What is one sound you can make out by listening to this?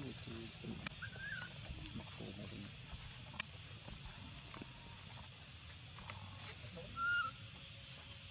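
A baby monkey gives short high squeaks.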